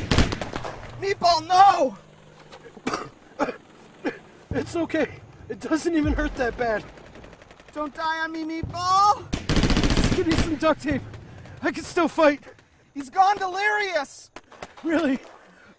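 A wounded man groans and speaks in pain.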